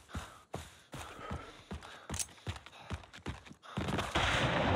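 Footsteps scrape over rock.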